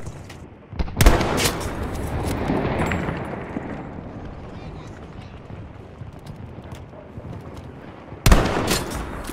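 A rifle fires a loud shot that echoes away.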